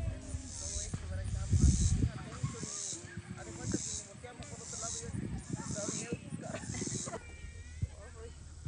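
Young men call out to each other in the distance.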